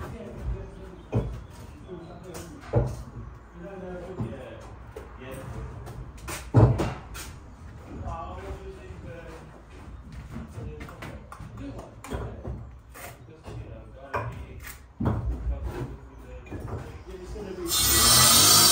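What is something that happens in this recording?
Bricks knock and clatter.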